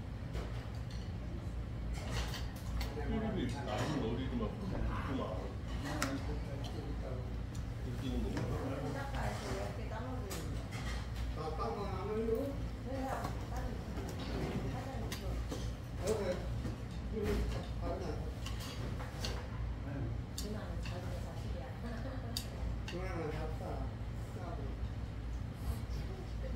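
Spoons and chopsticks clink against bowls.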